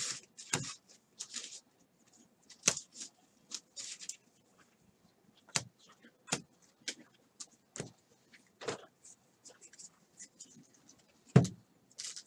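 Trading cards flick and rustle as they are shuffled by hand.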